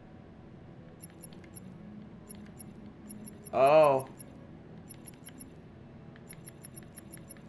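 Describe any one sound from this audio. Soft electronic menu ticks sound in quick runs as a selection moves.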